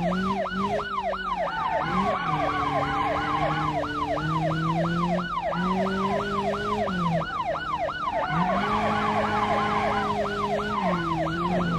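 A car engine hums steadily, its pitch shifting up and down as it drives.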